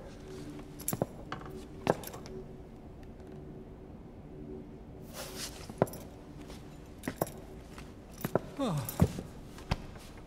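Heavy boots step slowly on a metal floor.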